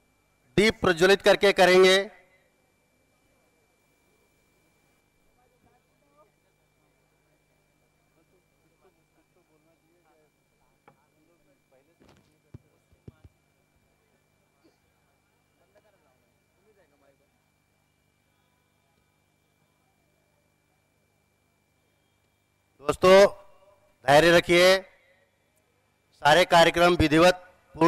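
A man speaks loudly through a loudspeaker outdoors, in short bursts.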